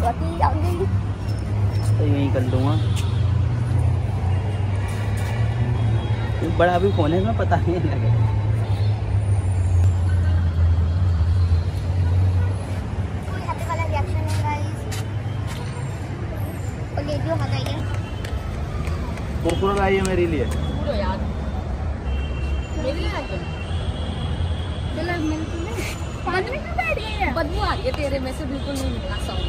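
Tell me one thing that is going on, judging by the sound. A young woman talks casually close by.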